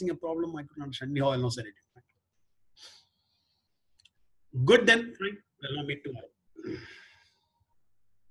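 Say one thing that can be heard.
An older man speaks calmly and close up, in short bursts with pauses.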